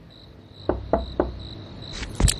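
A fist knocks three times on a wooden door.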